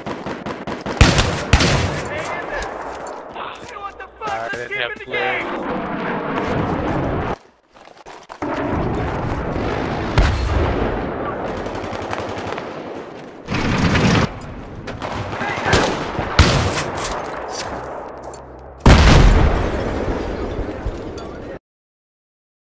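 A pump-action shotgun fires loud, booming shots.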